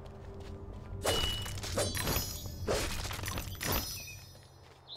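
A blade swishes and strikes with sharp hits.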